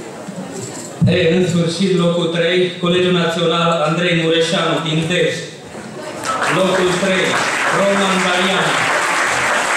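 A man speaks into a microphone and is heard over a loudspeaker in a hall.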